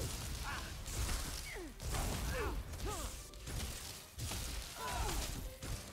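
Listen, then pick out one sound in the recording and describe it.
Lightning crackles and zaps.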